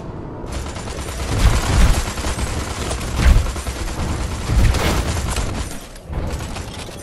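Gunfire and laser blasts crackle in quick bursts.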